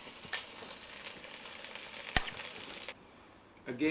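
A spoon scrapes and clinks against a plate.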